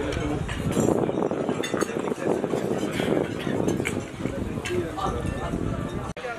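Dishes and cutlery clink on a table.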